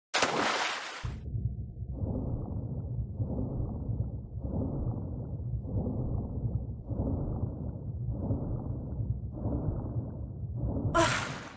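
A low muffled rumble drones underwater.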